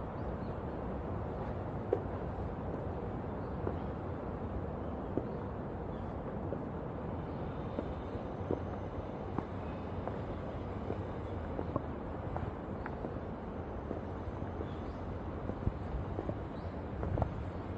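Footsteps crunch and scuff on a gravel path.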